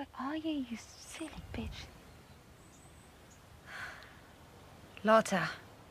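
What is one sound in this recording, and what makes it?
A young woman speaks softly and dreamily, close by.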